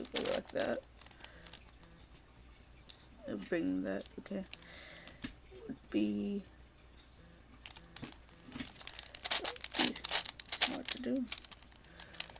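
Plastic puzzle cube layers click and clack as they are twisted.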